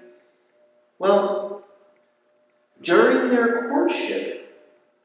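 A man speaks calmly into a microphone in a reverberant room.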